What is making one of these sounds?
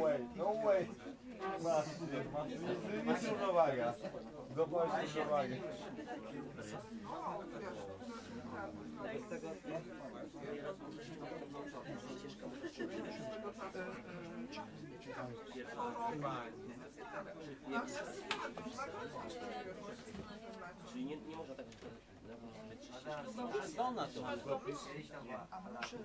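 A middle-aged man talks in a relaxed way.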